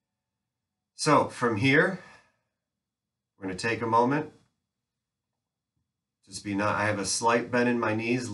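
A man speaks calmly and clearly close to the microphone, in short phrases with pauses.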